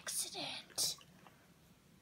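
A young girl speaks brightly and close by.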